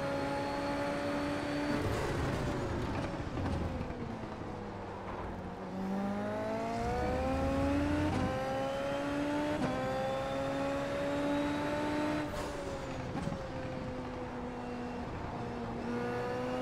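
A racing car engine roars loudly, rising and falling in pitch as the car speeds up, brakes and shifts gears.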